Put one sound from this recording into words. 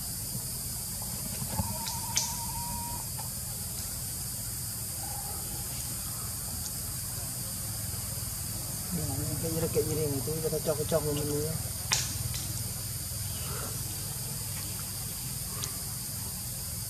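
Leaves rustle as a monkey climbs through tree branches.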